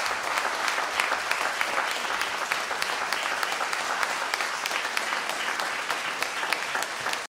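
An audience claps steadily in a room.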